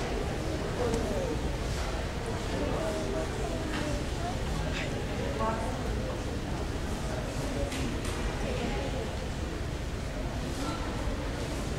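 A crowd of young people chatters in a large, echoing hall.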